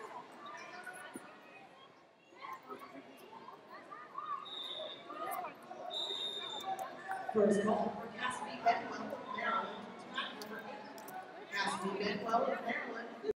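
A crowd of people chatter in a large echoing hall.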